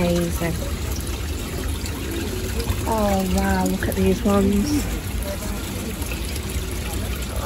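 Fish churn and splash at the water's surface.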